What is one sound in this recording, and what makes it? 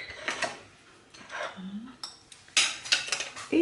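A ceramic plate clinks lightly as it is lifted.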